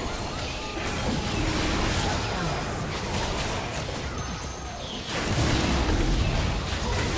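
Magic spells burst and clash in a hectic fantasy battle.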